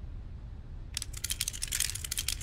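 A metal lock rattles in quick clicks.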